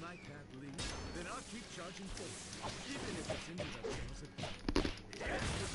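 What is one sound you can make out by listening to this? Fists and kicks land with sharp, quick thuds.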